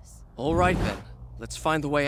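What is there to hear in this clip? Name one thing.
A heavy spear swishes through the air.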